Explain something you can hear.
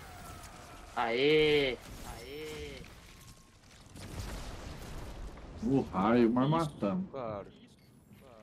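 A man speaks excitedly into a headset microphone.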